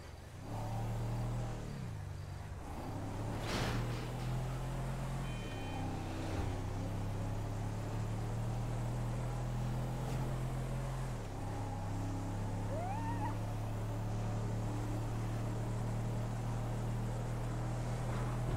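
A truck engine hums steadily and shifts gears as it speeds up.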